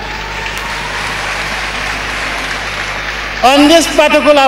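A large crowd cheers and chatters.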